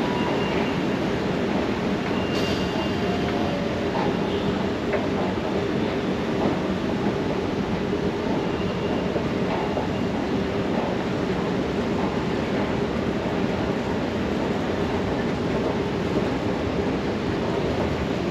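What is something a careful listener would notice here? An escalator hums and rumbles steadily as it climbs.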